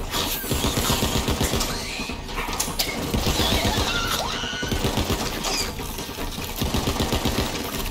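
A young woman talks with animation through a microphone.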